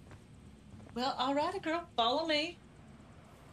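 A young woman speaks up with animation nearby.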